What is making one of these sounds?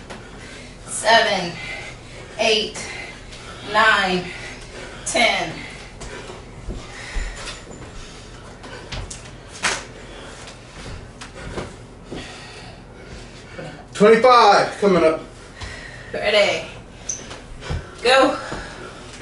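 A man calls out loudly in short, strained bursts nearby.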